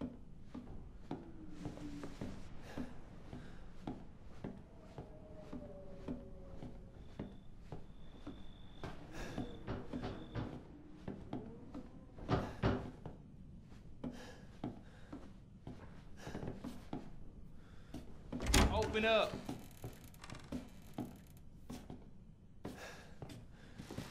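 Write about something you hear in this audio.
Footsteps thud slowly on creaking wooden floorboards.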